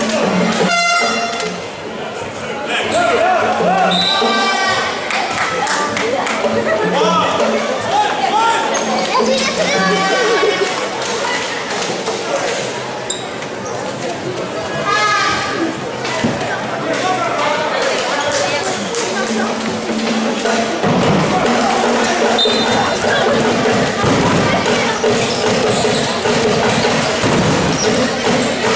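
A large crowd cheers and chatters in an echoing hall.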